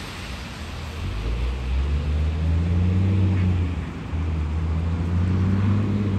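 A car approaches on a wet road.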